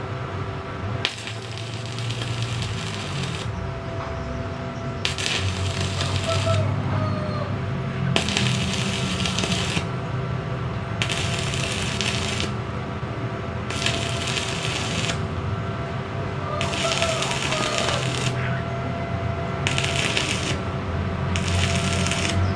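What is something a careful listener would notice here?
An electric welder crackles and sizzles in short bursts.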